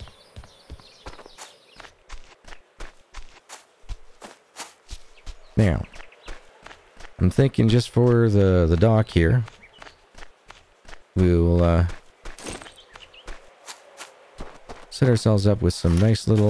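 Footsteps crunch on grass and dirt.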